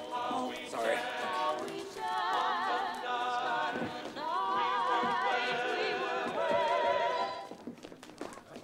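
Music with a wavering singing voice plays from a stereo and stops abruptly.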